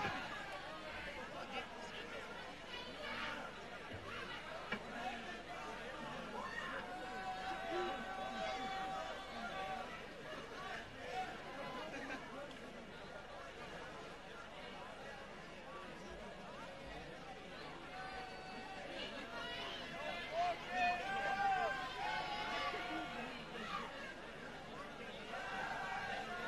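A crowd chatters and cheers in front of a stage.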